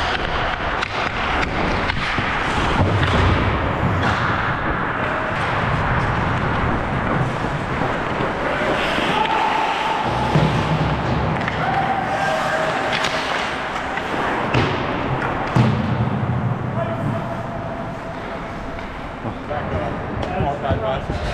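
Skate blades scrape and hiss on ice in a large echoing rink.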